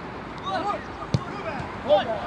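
A ball is kicked hard once.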